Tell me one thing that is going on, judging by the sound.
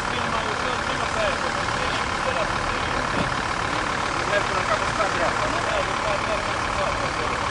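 A man talks quietly a few steps away.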